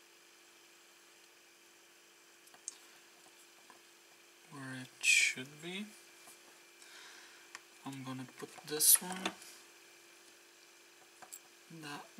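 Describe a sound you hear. Small metal parts click and clatter on a wooden surface.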